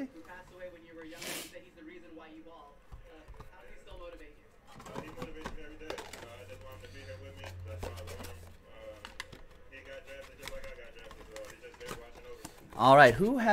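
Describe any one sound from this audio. Cardboard rustles and scrapes as hands handle a box.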